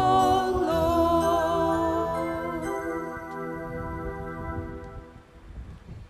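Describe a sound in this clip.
A woman sings through a microphone in a large echoing hall.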